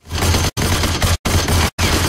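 A gun fires in a burst of shots.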